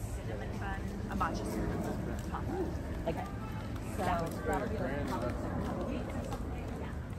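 Young women chat nearby.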